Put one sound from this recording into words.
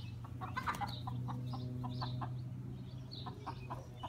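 A hen clucks softly outdoors.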